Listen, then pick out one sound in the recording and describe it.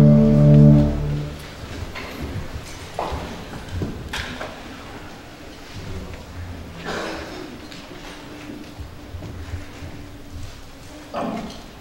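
Footsteps and soft knocks sound on a wooden stage.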